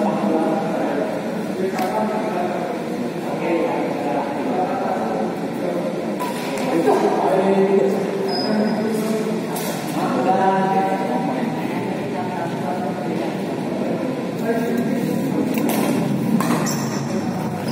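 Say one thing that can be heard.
Men talk loudly and call out across an echoing hall.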